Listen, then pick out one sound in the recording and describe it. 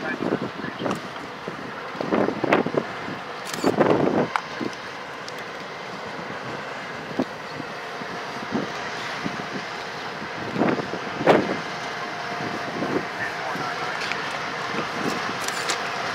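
Diesel locomotives rumble steadily as a freight train rolls past.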